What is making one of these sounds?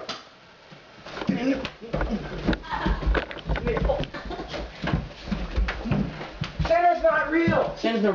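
Feet scuffle and thump on a wooden floor.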